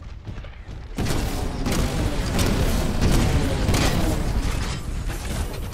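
Explosions boom and roar loudly.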